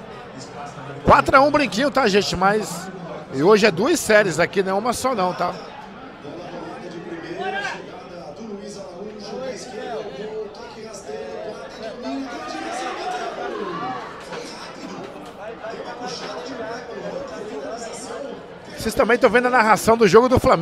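Pool balls clack together on a table.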